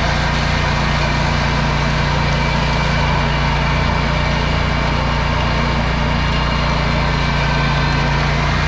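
Mower blades whir through thick tall grass.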